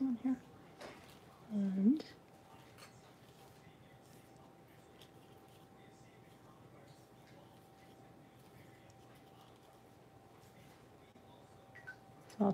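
A brush dabs softly against paper.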